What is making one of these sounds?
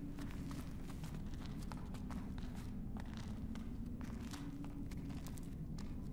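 Footsteps echo faintly in a stone corridor.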